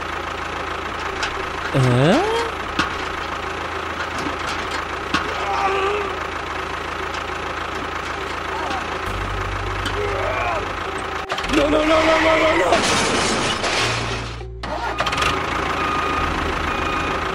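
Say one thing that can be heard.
A small toy tractor engine hums steadily.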